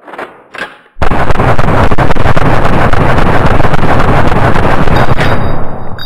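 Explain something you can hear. A submachine gun fires a rapid, continuous burst.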